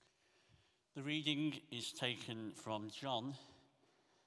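A man speaks calmly into a microphone, heard through loudspeakers in a large room.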